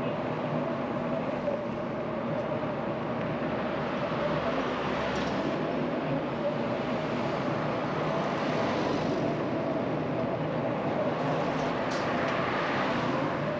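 Traffic rushes steadily along a wide road outdoors.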